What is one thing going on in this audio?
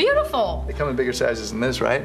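A young woman laughs brightly.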